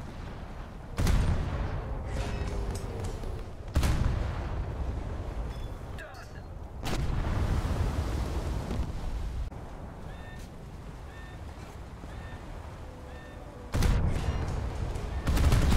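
Heavy naval guns fire loud booming shots.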